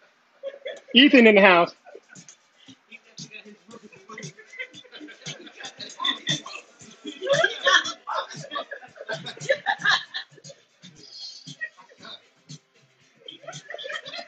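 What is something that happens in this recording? A child talks and laughs nearby.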